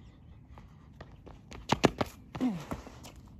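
Footsteps slap on pavement as a person runs close by.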